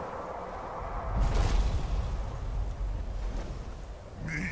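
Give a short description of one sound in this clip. A deep magical rumble swells and fades.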